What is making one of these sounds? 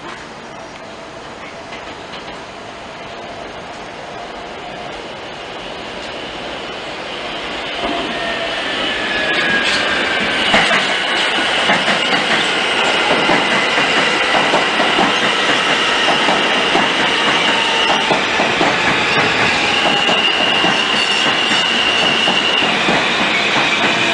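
A subway train approaches and rumbles past up close, growing louder.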